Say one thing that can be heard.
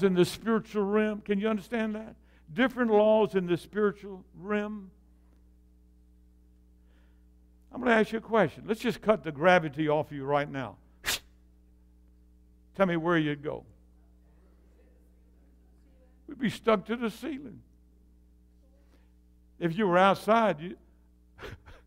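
An elderly man preaches with animation through a microphone in an echoing hall, pausing between phrases.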